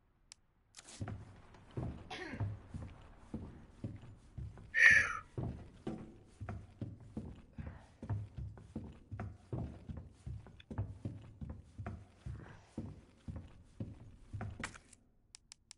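Footsteps thud steadily on a hard floor.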